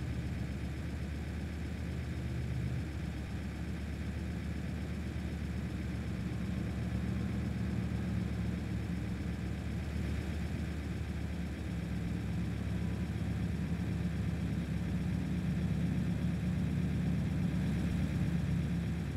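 Tyres roll on a highway.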